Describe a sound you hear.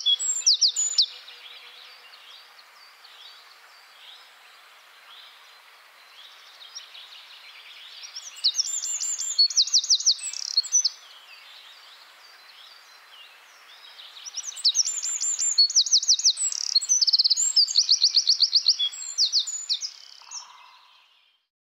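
A small bird sings a loud, rapid trilling song in bursts, close by.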